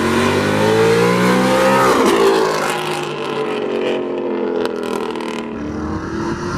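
A sports car accelerates hard past, its engine note dropping as it goes by.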